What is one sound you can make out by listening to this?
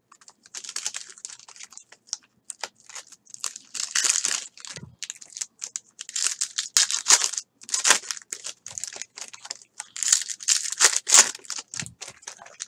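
Plastic wrappers crinkle and rustle as packs of cards are torn open.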